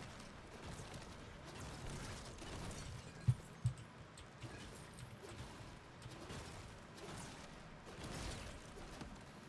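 Rocks crack and shatter with sharp crunches.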